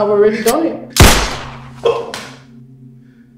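A gunshot cracks loudly in a room.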